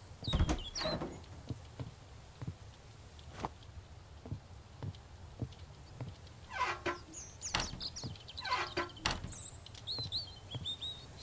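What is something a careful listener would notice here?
Footsteps thud on hollow wooden floorboards.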